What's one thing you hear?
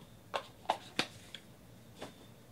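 Cardboard packaging clicks and rustles as hands handle it.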